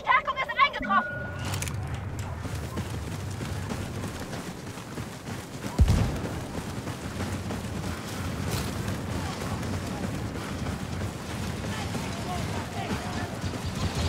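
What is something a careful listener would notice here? A low rumble of battle drones steadily.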